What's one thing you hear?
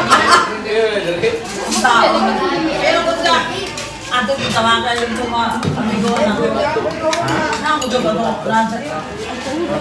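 Serving spoons scrape and clink against metal food trays.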